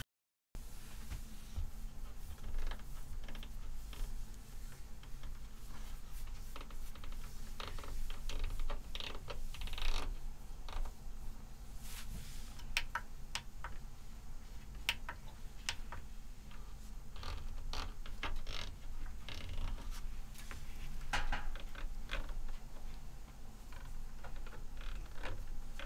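Buttons on a control surface click softly under a finger.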